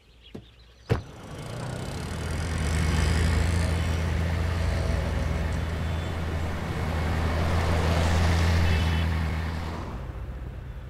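A car engine roars as the car drives past.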